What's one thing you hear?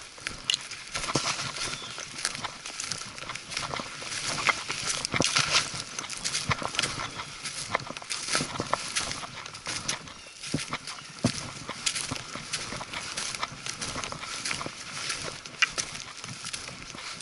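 Leaves and twigs crackle under the tyres.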